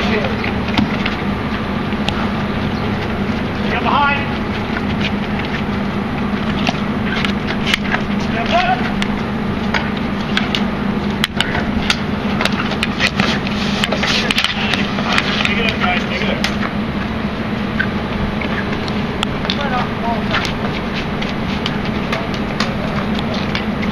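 Hockey sticks clack against a ball on hard pavement.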